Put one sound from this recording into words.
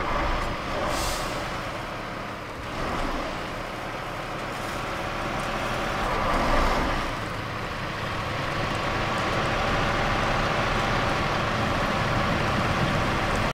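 A heavy truck engine rumbles steadily as it drives along a rough road.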